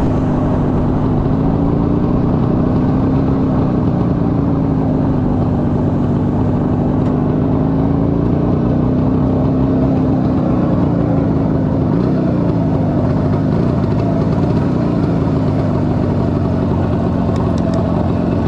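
A motorcycle engine rumbles steadily close by, its pitch rising and falling with the throttle.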